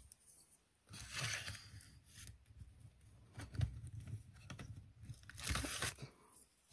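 Fabric rustles as an arm in a brace moves about.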